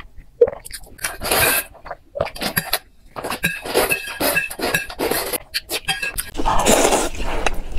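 A woman slurps noodles loudly close to a microphone.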